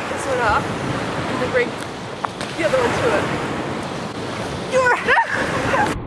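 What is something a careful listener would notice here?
Women laugh and shriek nearby, outdoors.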